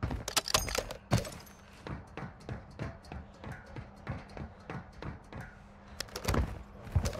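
Hands and feet knock steadily on a metal ladder during a climb.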